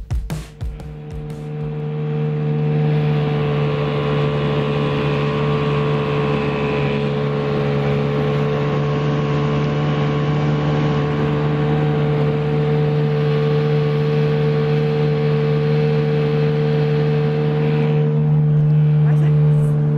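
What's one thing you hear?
A boat's outboard motor drones steadily at speed.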